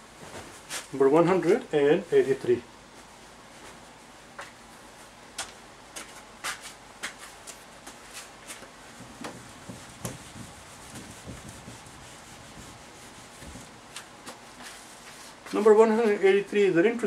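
A man speaks calmly nearby in short bursts.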